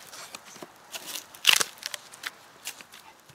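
A saw rasps through a branch.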